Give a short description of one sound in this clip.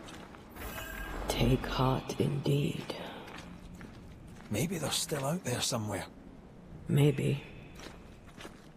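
Footsteps crunch slowly on rocky ground.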